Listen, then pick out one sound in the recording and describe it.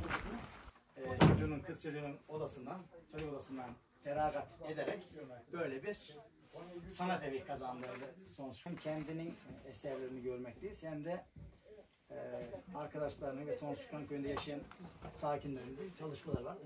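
A man speaks calmly to a group in a room.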